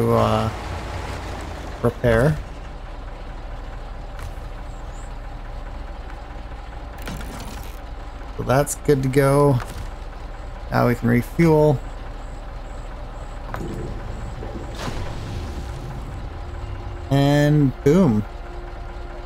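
A heavy truck engine idles with a steady low rumble.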